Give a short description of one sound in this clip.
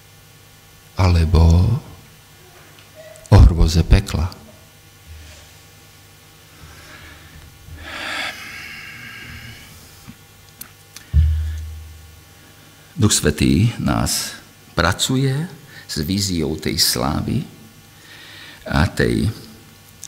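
A middle-aged man speaks emotionally through a microphone, with long pauses.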